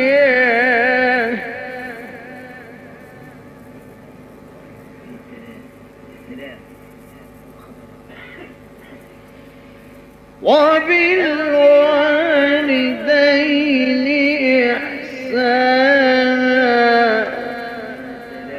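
A man chants in a long, melodic voice, heard through an old recording with echo.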